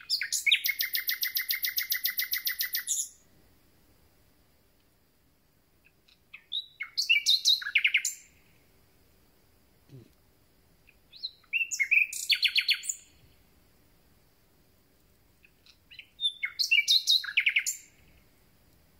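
A songbird sings loud, rapid trilling phrases close by, with pauses between them.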